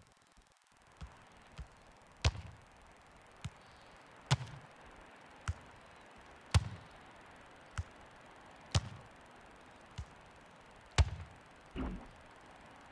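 A football is kicked with sharp, dull thuds, again and again.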